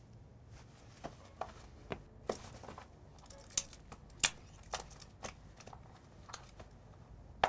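A leather handbag rustles and its fittings clink as it is handled.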